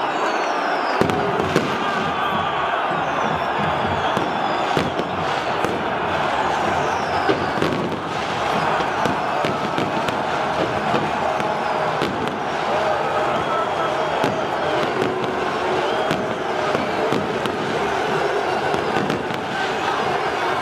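Firecrackers bang sharply now and then.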